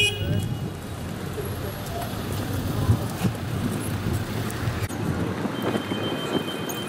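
Traffic rumbles steadily on a busy street nearby.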